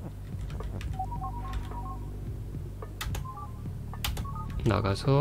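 Short electronic blips sound as game pieces move.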